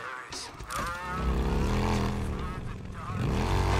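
A motorcycle engine starts and revs loudly.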